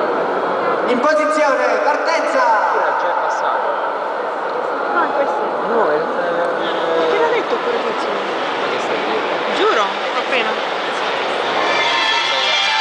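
A young girl speaks loudly on a stage.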